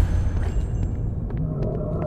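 Light footsteps tap on wooden planks.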